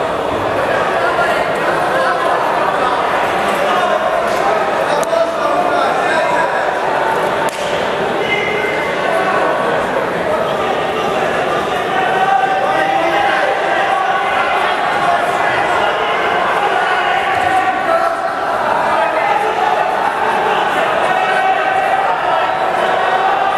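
A crowd of men and women chatters and shouts in a large echoing hall.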